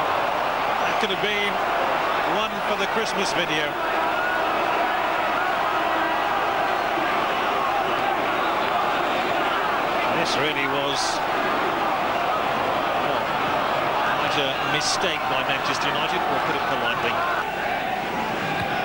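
A stadium crowd roars steadily in a large open ground.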